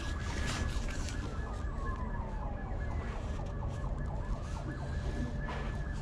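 A large stiff sheet rustles as it is handled.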